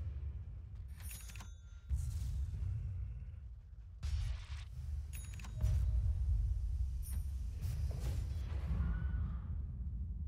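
Magic blasts burst and crackle in quick bursts.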